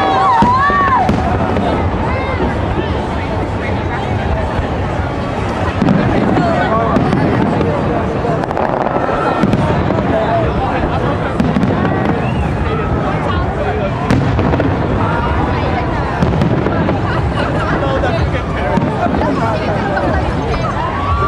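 A crowd outdoors cheers and chatters loudly.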